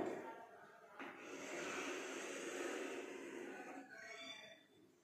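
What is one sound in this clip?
Chalk scrapes along a blackboard as a circle is drawn.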